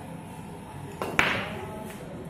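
A cue strikes a billiard ball with a sharp crack.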